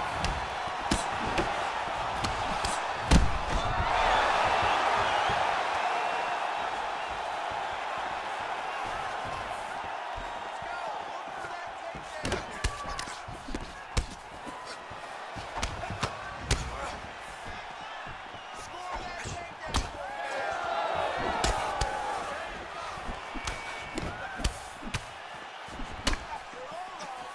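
Punches and kicks land on a body with sharp thuds.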